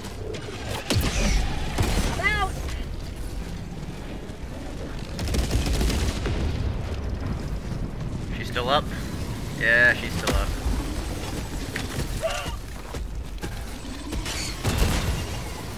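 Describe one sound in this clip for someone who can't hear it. Explosions boom nearby with deep rumbling.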